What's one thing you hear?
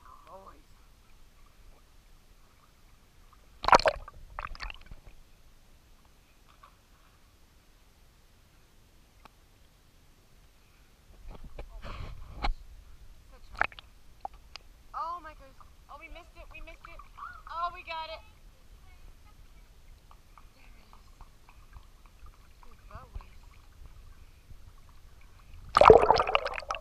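Water splashes and laps as a dog paddles nearby.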